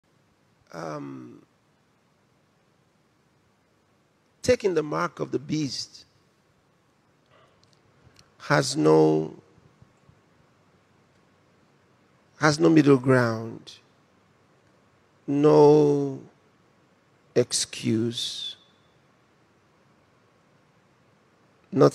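A man preaches forcefully through a microphone, in short bursts with pauses.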